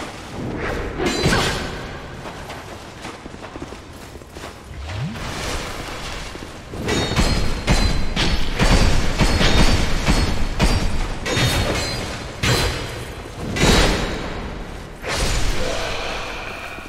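Swords clash and strike armour in a fight.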